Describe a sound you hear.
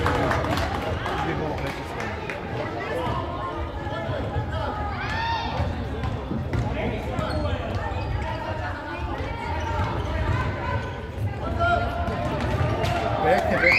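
Children shout across a large echoing hall.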